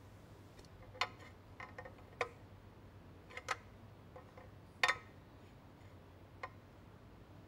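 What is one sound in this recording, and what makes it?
Metal clanks and clicks sharply a few times.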